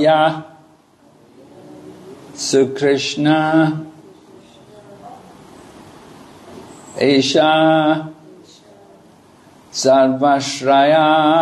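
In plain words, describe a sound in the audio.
An elderly man chants a slow melody into a microphone, in phrases with pauses between them.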